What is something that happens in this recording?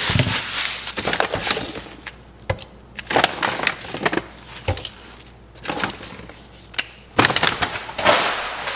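Objects are set down on a hard countertop with light knocks.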